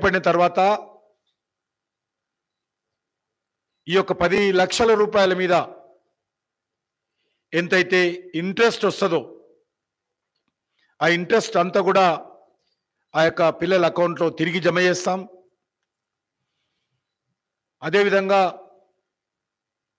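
A middle-aged man speaks slowly and deliberately into a microphone, in short phrases with long pauses.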